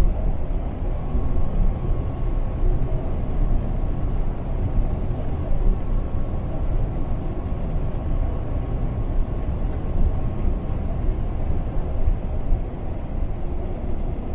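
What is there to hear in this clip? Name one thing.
Tyres roll and hum on a wet road.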